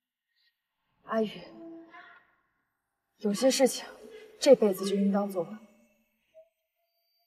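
A young woman speaks anxiously, close by.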